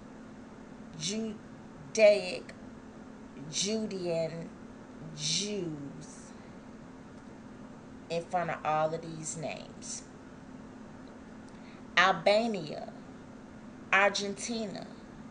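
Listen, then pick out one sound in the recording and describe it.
A middle-aged woman talks calmly and close up, in short bursts with pauses.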